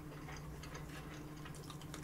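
A spoon scrapes against a bowl.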